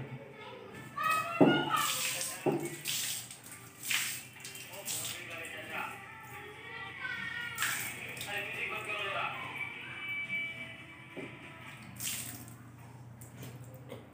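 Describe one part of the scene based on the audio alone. Water splashes as a woman rinses her face from a jug.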